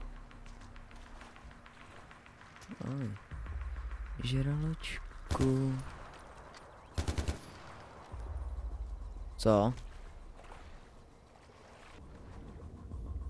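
Water sloshes as a swimmer moves through it.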